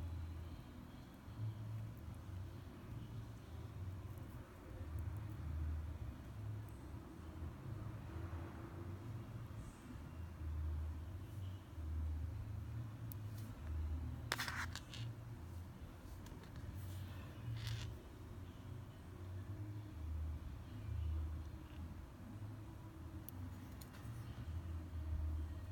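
Fingers handle a small wet fish with soft rustles and clicks.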